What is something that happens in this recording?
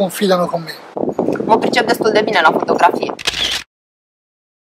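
A young woman speaks warmly, close by.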